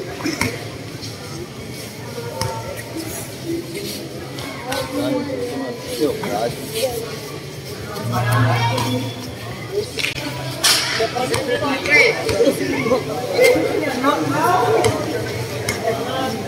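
Bare feet slap on a hard floor.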